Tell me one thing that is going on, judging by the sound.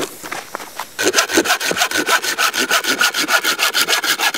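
A bow saw cuts through a log in quick, rhythmic strokes.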